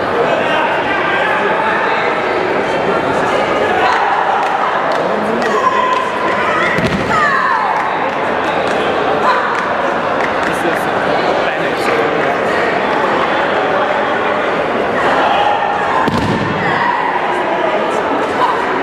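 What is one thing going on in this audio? A large crowd cheers and chatters in a big echoing hall.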